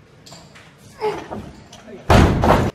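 Heavy barbell plates clank as a weightlifter snatches the bar overhead.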